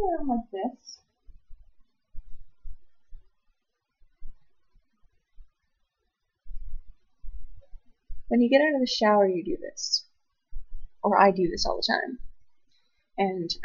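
Cloth rustles.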